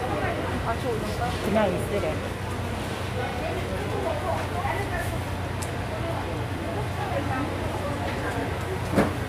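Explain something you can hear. Footsteps shuffle on a hard floor nearby.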